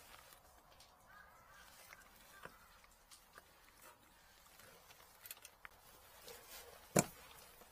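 A gloved hand rattles and clicks plastic parts and wires.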